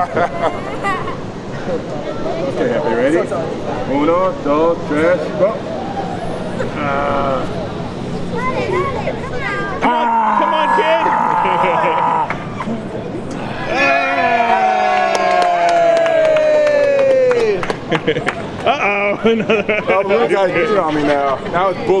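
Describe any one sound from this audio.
A crowd of people chatters and cheers outdoors.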